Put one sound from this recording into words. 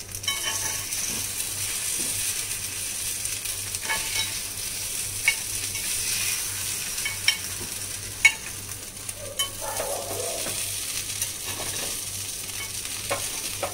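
A metal spoon scrapes and clicks against a pan.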